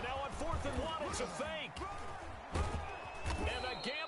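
Football players collide with thudding pads.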